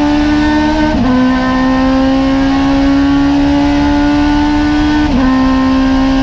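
A small race car's engine shifts up through the gears.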